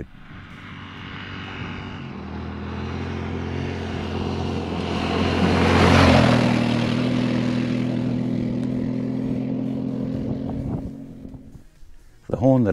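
A motorcycle engine roars closer, passes by and fades into the distance.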